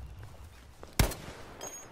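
A single rifle shot rings out.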